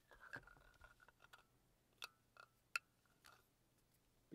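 Fingers press a silicone toy, making soft pops.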